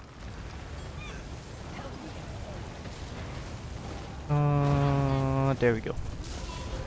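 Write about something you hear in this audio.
Magic spells crackle and blast in a video game.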